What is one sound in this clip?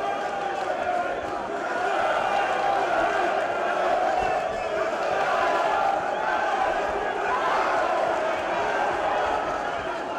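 Punches thud against gloves and bodies.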